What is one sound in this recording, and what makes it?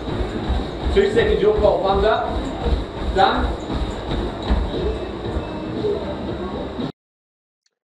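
Feet pound rhythmically on a running treadmill.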